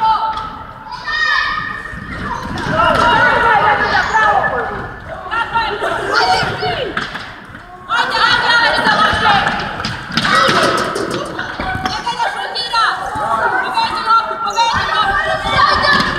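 Sneakers squeak sharply on a wooden floor.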